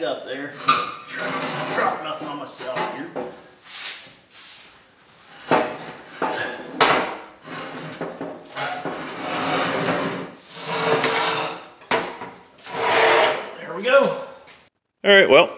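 Rusty metal parts scrape and clank against a hard floor.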